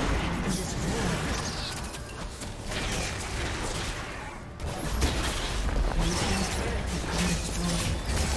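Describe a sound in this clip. Game spells and attacks crackle and burst in a busy fight.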